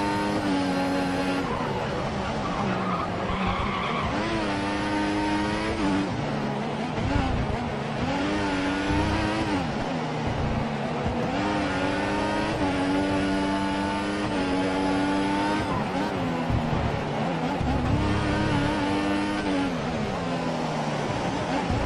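A racing car engine screams, rising and falling in pitch as the car speeds up and brakes through the corners.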